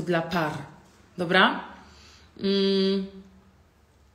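A young woman speaks close to the microphone, with expressive, drawn-out sounds.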